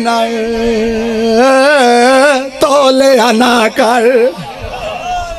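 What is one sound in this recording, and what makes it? A man chants loudly and with passion through a microphone and loudspeakers.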